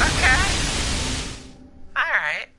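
A monster screeches and crashes loudly in a fight.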